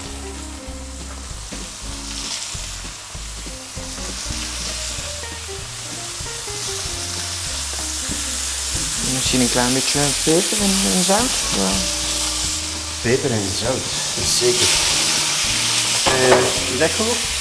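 Meat sizzles and hisses in a hot frying pan.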